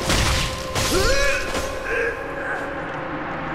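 Metal weapons clash and slash in a fight.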